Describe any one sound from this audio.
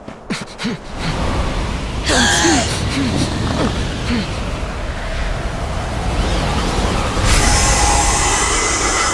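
Wind roars and gusts strongly.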